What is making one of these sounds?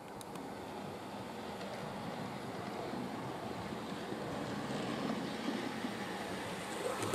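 A small model train rumbles and clatters along its track, growing louder as it approaches.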